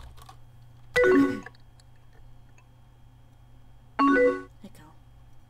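A short electronic chime sounds as a chat message arrives.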